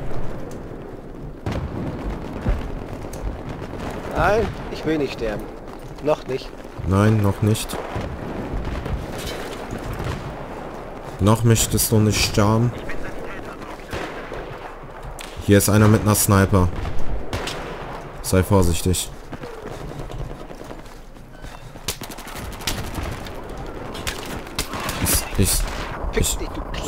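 Footsteps thud steadily on pavement as a soldier runs.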